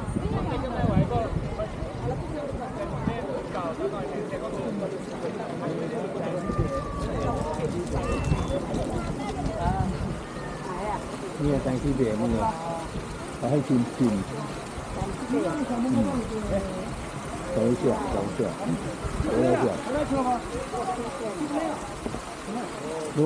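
Adult men and women chatter nearby outdoors, their voices overlapping.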